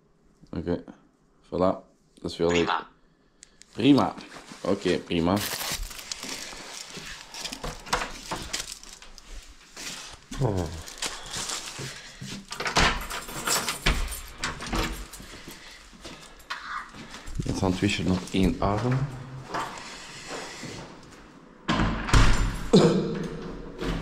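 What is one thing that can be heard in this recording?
A man talks nearby in a low, calm voice.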